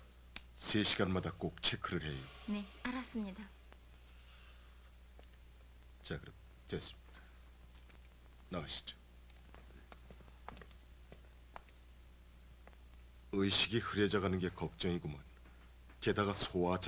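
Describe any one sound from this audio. A middle-aged man speaks calmly and seriously, close by.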